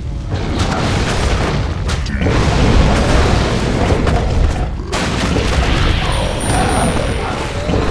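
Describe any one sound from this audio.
Fiery explosions boom and crackle in a game battle.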